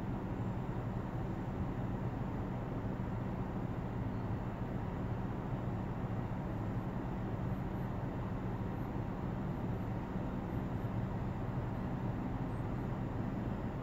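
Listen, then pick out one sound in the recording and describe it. A car engine idles steadily with a low rumble from inside the car.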